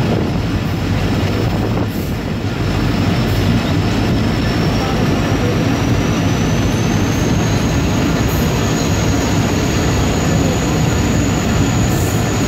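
Train wheels clatter over the track joints.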